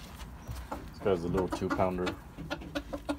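A rooster crows loudly.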